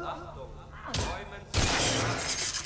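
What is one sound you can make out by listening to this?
A gun fires two loud shots.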